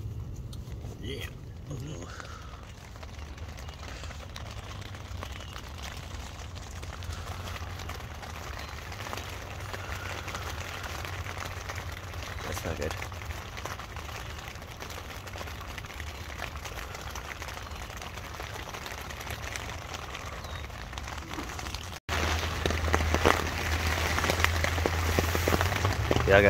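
Rain patters steadily on a tent roof.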